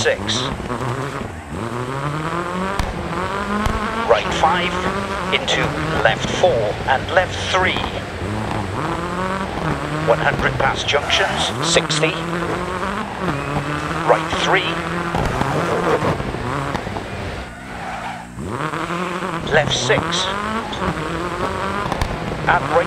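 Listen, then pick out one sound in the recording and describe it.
A rally car engine revs hard, rising and dropping as it shifts through the gears.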